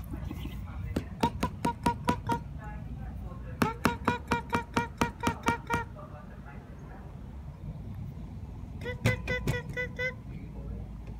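A small rodent squeaks in short rhythmic bursts as it sleeps.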